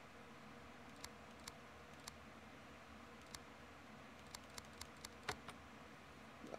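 A combination lock's wheels click as they turn.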